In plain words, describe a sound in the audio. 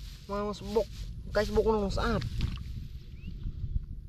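Dry straw rustles and crackles under hands.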